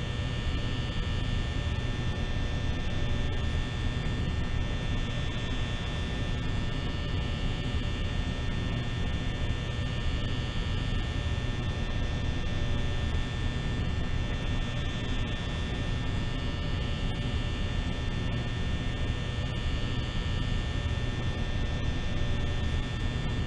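A fan whirs steadily.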